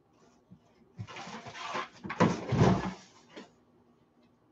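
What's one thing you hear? A man rummages through items, rustling and knocking them.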